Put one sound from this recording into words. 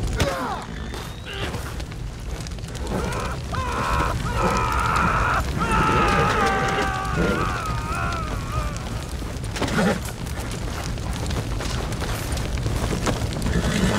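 A horse's hooves thud on dirt.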